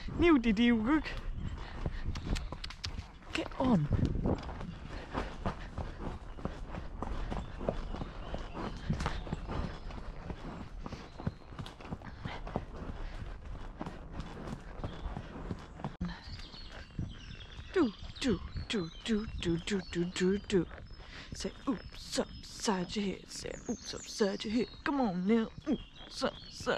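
A horse's hooves thud steadily on a dirt path.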